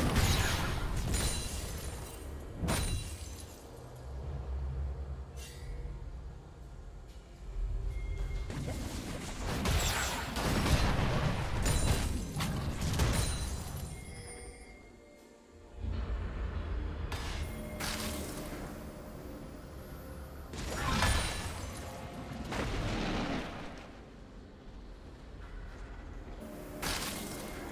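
Game spell effects whoosh and zap in short bursts.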